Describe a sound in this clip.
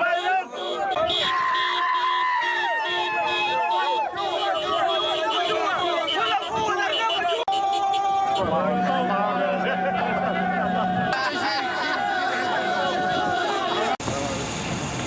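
A large crowd of men chants and sings loudly outdoors.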